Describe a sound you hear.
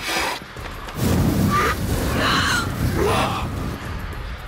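Flames roar with a deep rumble.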